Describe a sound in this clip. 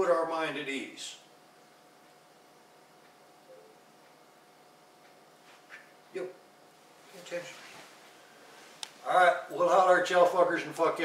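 A middle-aged man speaks calmly and close by, with pauses.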